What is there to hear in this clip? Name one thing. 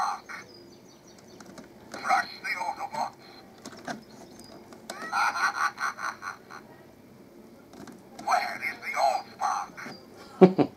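A toy robot plays short electronic voice clips and sound effects.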